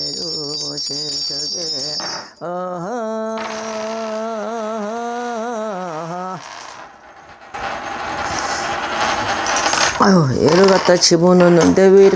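An elderly woman chants in a singing voice into a close microphone.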